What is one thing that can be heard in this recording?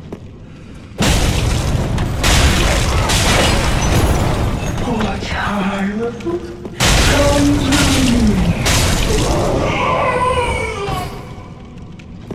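Heavy blades clash and strike in a fight.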